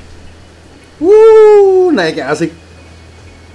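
A young man exclaims loudly in surprise.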